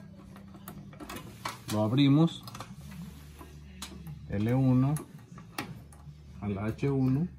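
Test probes tap and click against metal terminals.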